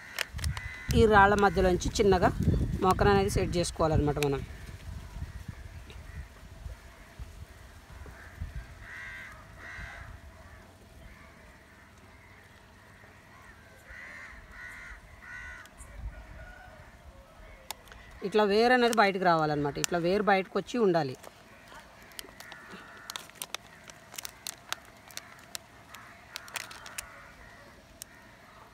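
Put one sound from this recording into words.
A plastic cup crinkles and clicks as it is handled.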